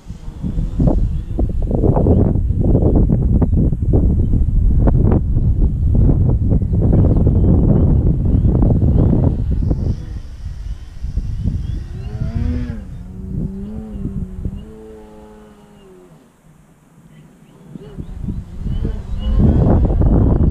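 A small model plane engine buzzes overhead, rising and falling in pitch as it passes.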